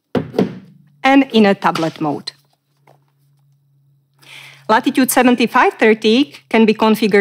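A middle-aged woman speaks calmly and clearly into a close microphone.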